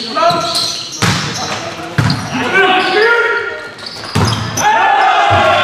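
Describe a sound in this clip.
A volleyball is struck hard several times, echoing in a large hall.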